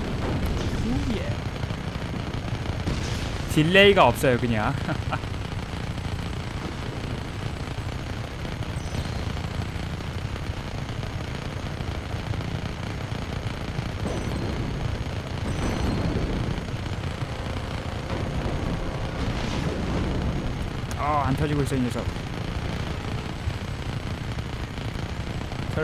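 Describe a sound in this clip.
A helicopter's rotor drones steadily.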